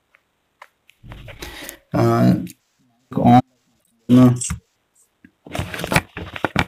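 A young man speaks over an online call.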